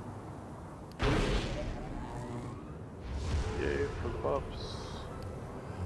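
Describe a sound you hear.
A machine hums and whooshes as it powers up.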